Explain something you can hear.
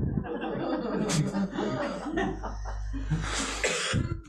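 A young woman laughs softly nearby.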